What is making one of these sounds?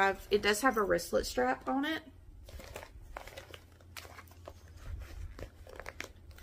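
A bag's material rustles as it is handled.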